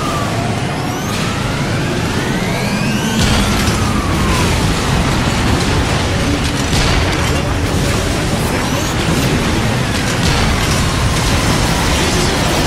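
Electronic laser beams whine with gliding tones.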